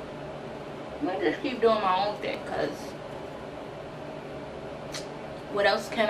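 A young woman speaks calmly and close to a microphone.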